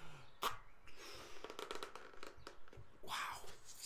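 A man blows air into a balloon, inflating it.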